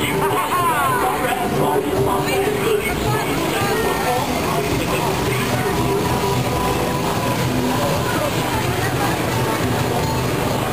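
A crowd chatters outdoors close by.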